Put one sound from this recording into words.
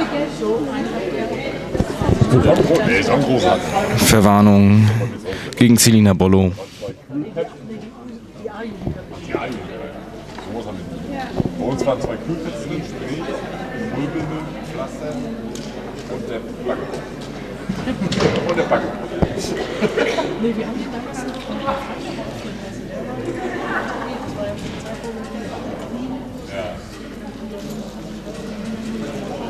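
Women's voices call and chatter in a large echoing hall.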